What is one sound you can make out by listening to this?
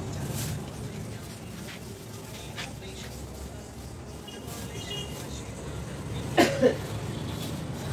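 A child shuffles barefoot across a floor.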